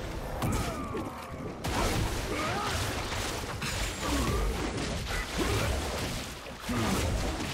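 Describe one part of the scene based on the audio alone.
Spell effects crackle and clash in a video game fight.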